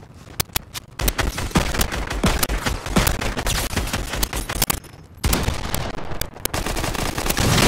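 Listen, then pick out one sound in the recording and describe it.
A gun fires rapidly in loud bursts.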